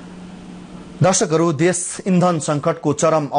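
A man speaks calmly and clearly into a microphone, reading out the news.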